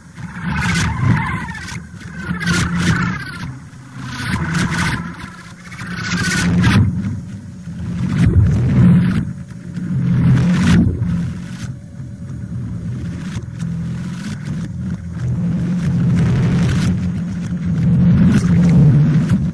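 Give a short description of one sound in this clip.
An acoustic guitar strums steadily.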